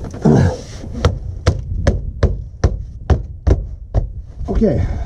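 A hand knocks repeatedly on a hollow metal panel overhead.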